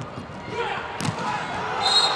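A volleyball is spiked with a sharp smack.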